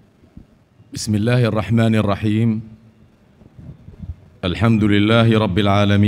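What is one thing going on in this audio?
An elderly man speaks slowly and loudly into a microphone over loudspeakers.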